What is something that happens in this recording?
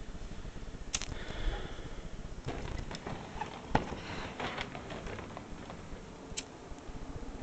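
A lighter clicks sharply as it is struck.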